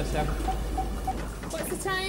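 A young woman speaks nearby with animation.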